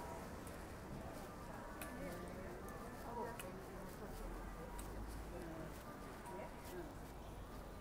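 Men and women talk softly in the background.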